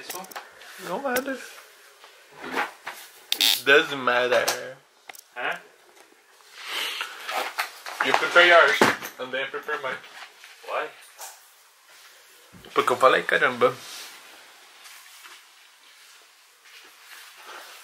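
Clothes rustle as they are handled and shaken out.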